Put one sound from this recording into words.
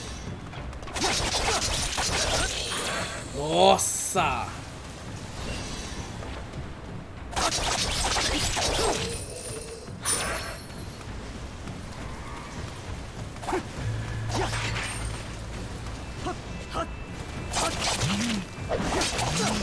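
Swords clash and slash in fast bursts of game combat.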